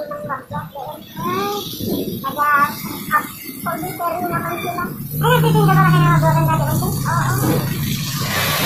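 A young man talks up close, with animation.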